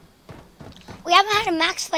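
A young boy talks close to a microphone.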